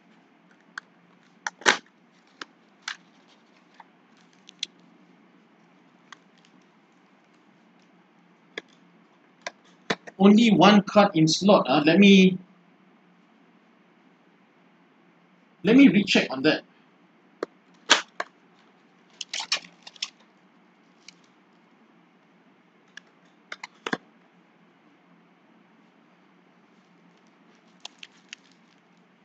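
Plastic card wrappers crinkle and cards click as they are handled.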